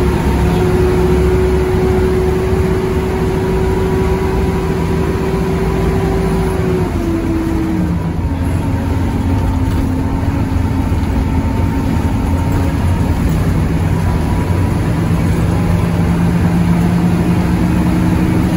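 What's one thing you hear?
A bus engine hums and drones steadily, shifting pitch as the bus drives.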